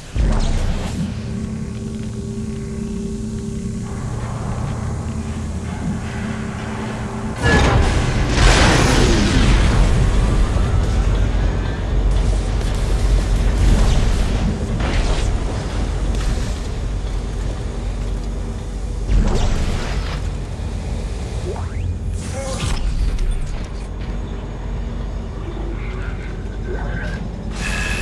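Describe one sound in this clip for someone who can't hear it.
A deep machine hum drones steadily.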